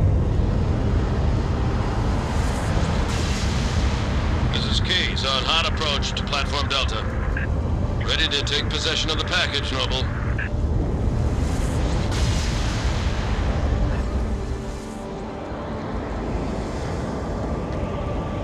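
A dropship engine roars steadily overhead.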